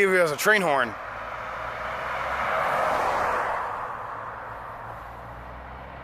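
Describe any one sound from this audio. A pickup truck drives past on the road, rising and fading.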